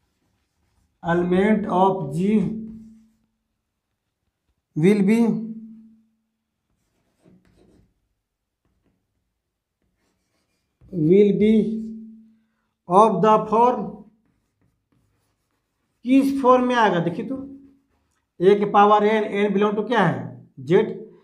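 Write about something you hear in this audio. A middle-aged man speaks calmly, explaining in short phrases.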